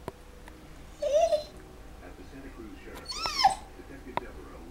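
A small dog whines softly.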